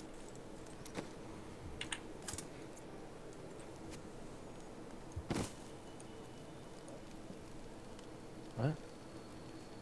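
Short interface clicks and chimes sound now and then.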